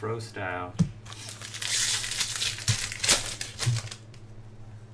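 A plastic wrapper crinkles and tears open.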